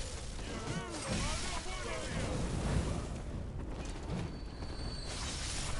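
Blades slash and strike flesh in a fight.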